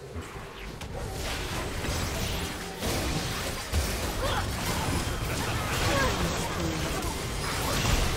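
Game spells crackle and burst in a fight.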